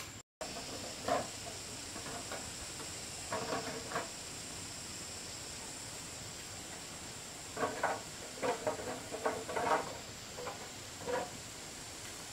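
Bamboo poles clatter and knock together.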